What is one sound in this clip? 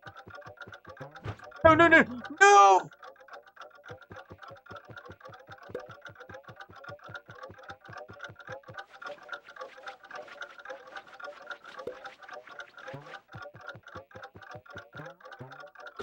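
Upbeat game music plays with a steady, bouncy beat.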